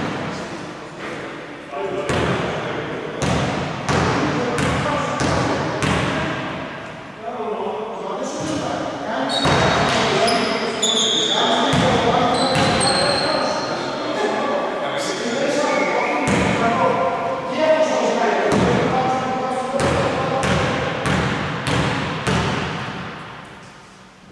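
Men call out to each other in a large echoing gym.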